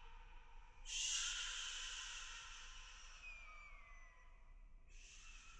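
A creature lets out a loud, shrill screech that slowly falls away.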